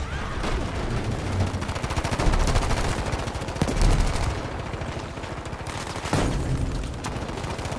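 Explosions boom and debris crashes.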